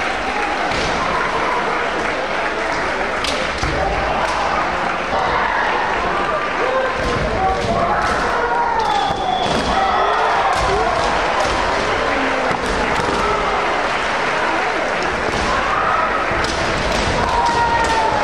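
Kendo fighters let out loud shouts.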